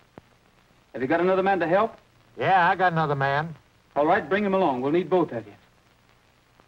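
An older man answers over a telephone.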